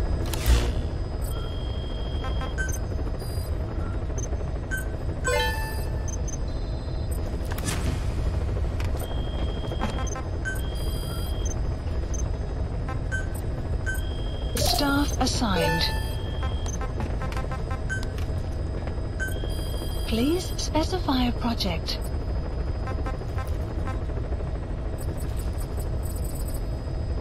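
Short electronic menu beeps chirp again and again.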